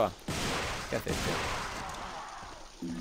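Pistols fire a rapid burst of shots.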